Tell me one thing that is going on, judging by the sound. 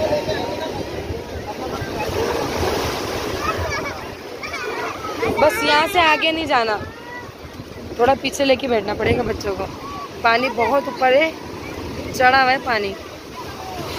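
Waves wash and splash onto the shore.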